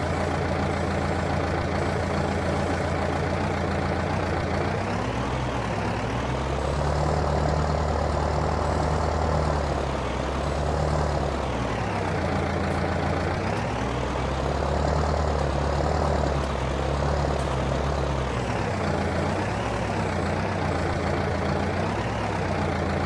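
A tractor engine drones steadily, rising and falling in pitch as it revs.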